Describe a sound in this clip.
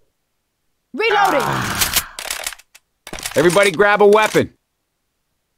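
A creature snarls and shrieks up close.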